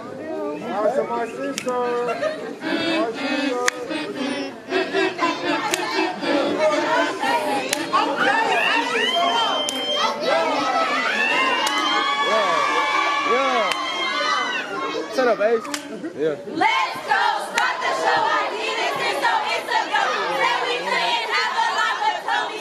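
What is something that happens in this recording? A group of young women chant loudly in unison.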